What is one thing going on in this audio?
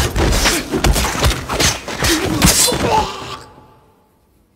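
Bodies thud and bang against a wall in a scuffle.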